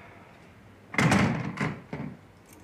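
A door swings shut with a thud.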